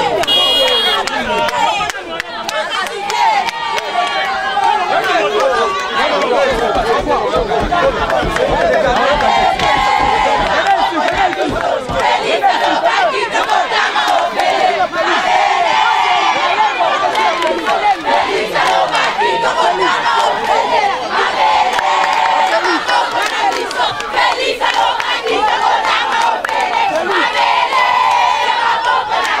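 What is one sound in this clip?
A large crowd of young people shouts and chants loudly outdoors, close by.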